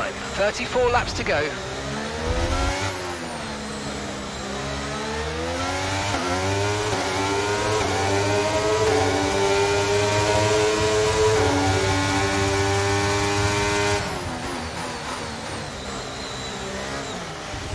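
A racing car engine screams, rising and falling in pitch as the car shifts gears.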